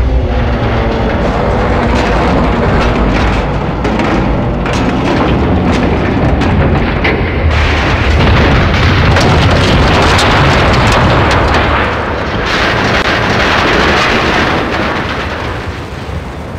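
A large explosion roars into a burning fireball.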